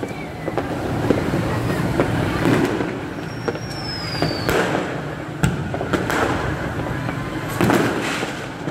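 Fireworks pop and crackle in the sky.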